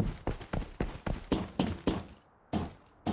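Heavy footsteps clang quickly on metal stairs.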